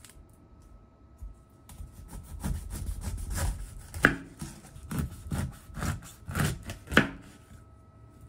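A knife crunches through a pineapple's tough skin.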